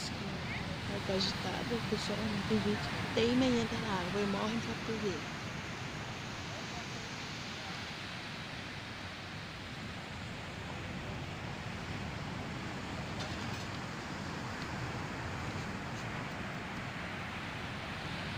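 Waves crash and wash onto a beach in a steady roar.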